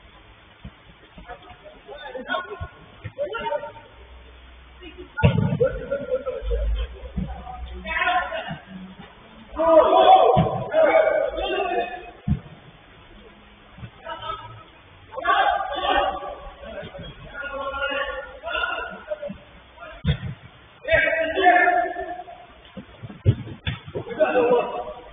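Young men shout and call out to each other across an echoing indoor pitch.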